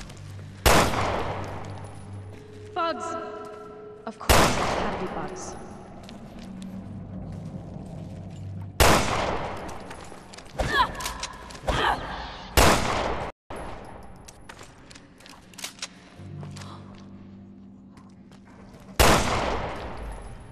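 A pistol fires single loud shots that echo off hard walls.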